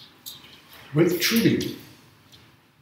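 An elderly man speaks briefly and calmly, close by.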